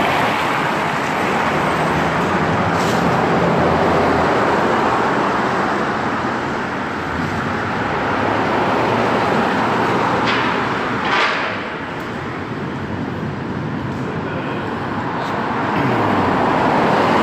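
Traffic rushes past steadily on a nearby road, echoing under a bridge.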